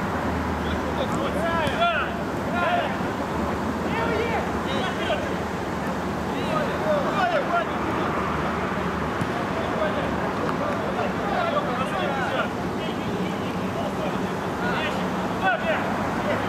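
A crowd of spectators murmurs and chatters nearby.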